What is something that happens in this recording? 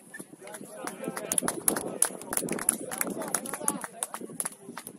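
Spectators cheer loudly.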